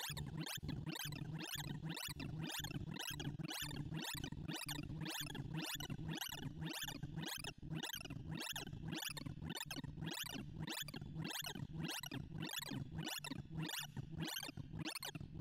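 Rapid electronic beeps sweep up and down in pitch, over and over.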